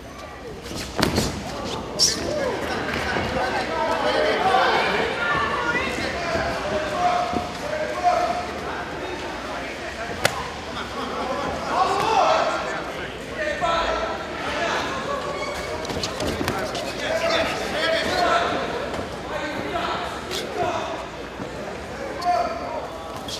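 Punches thud against boxing gloves.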